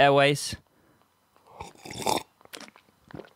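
A young man sips and swallows water close to a microphone.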